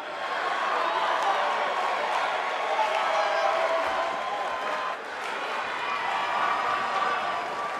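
A large crowd cheers and roars loudly in a big arena.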